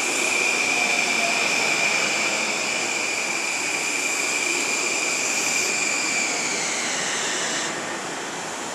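A train's electric motors whine high and then drop in pitch as the train slows.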